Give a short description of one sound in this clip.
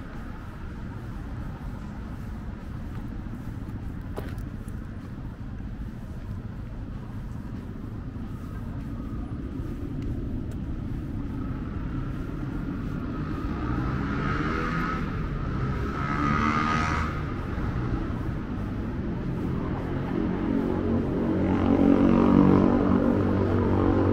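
A tram rumbles steadily along its tracks, growing louder.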